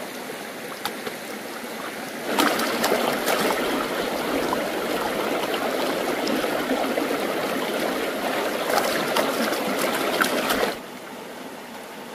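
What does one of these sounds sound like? A shallow stream babbles steadily over rocks.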